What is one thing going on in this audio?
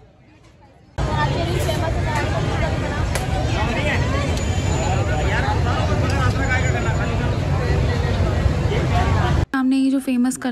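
Metal spatulas clatter and scrape on a hot griddle.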